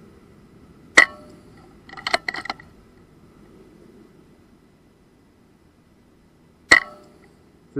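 A gunshot cracks sharply outdoors.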